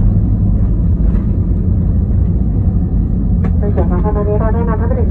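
A jet engine roars with a deep, steady rumble as an airliner rolls along a runway.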